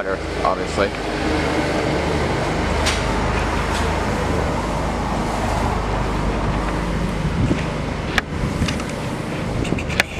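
A pressure washer sprays water in a steady hiss.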